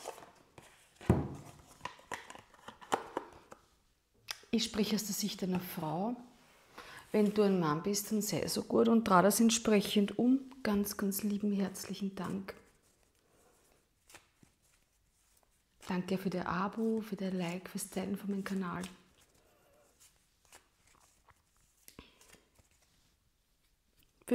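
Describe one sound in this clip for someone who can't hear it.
Cards shuffle and riffle in hands.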